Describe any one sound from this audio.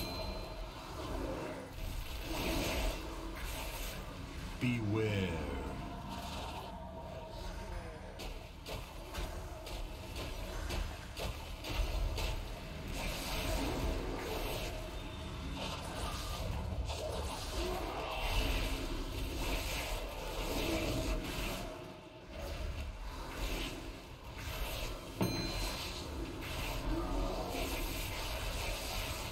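Spell effects crackle and whoosh during a battle.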